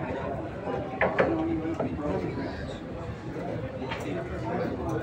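Pool balls click sharply against each other.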